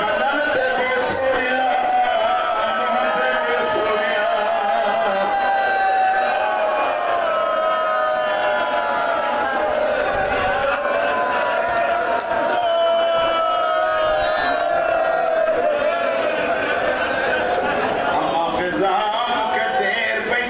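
A man chants a lament loudly through a microphone, with echo.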